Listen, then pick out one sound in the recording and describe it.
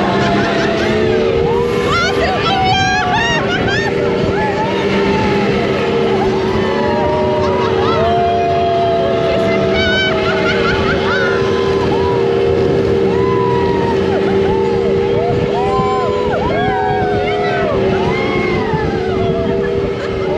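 A ride car hums steadily as it speeds along a track.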